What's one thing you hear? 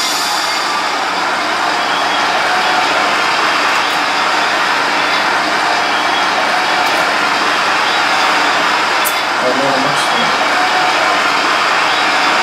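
Electronic game music plays loudly from an arcade machine.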